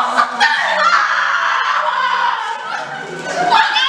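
A young woman screams and shrieks loudly nearby.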